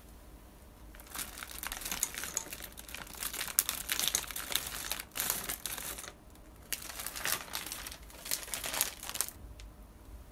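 Frozen berries rattle and tumble out of a plastic bag into a glass.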